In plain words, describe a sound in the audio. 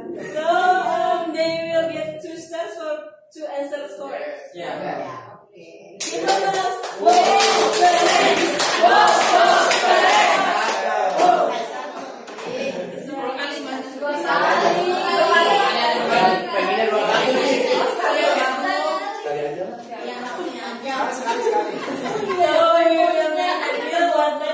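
A woman speaks to a group in a room with some echo.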